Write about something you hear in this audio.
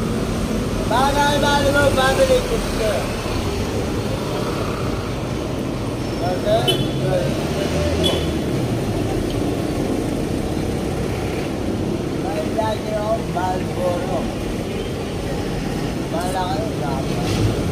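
An elderly man talks calmly, close by.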